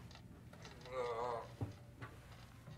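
A young man groans in pain close by.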